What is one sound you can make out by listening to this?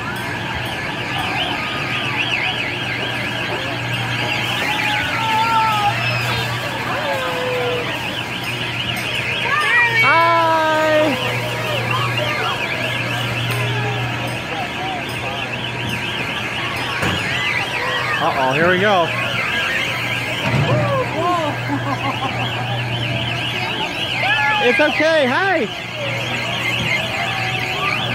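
A carnival ride hums steadily as it spins.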